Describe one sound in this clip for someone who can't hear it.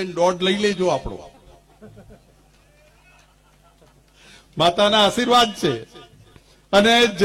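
A middle-aged man speaks forcefully into a microphone over a loudspeaker.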